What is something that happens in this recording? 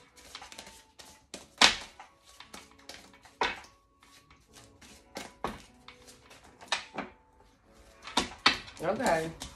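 Cards are shuffled and tapped with sharp clicks.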